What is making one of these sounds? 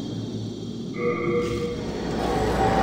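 A soft chime rings out.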